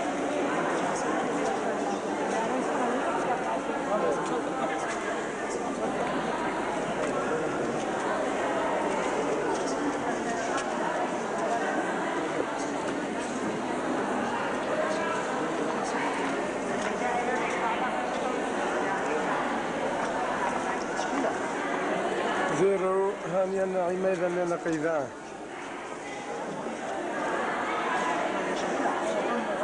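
A crowd of men and women murmurs and talks in an echoing hall.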